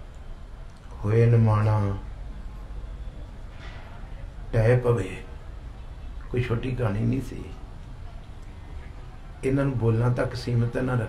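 A middle-aged man chants in long, drawn-out phrases through a microphone.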